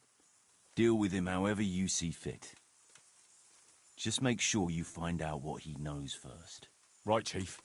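A middle-aged man speaks calmly and firmly, close by.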